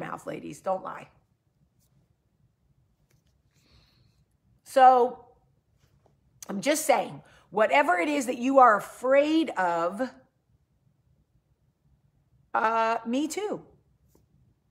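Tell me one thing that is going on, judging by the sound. A woman speaks calmly and close up, with pauses.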